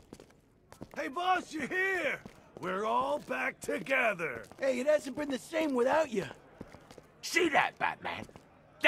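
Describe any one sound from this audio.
A middle-aged man speaks gruffly and nervously up close.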